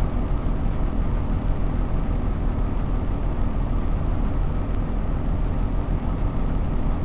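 A train's engine hums low and steady while idling.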